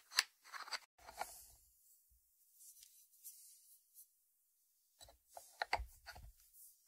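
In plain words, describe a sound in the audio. A ceramic lid clinks against its ceramic dish.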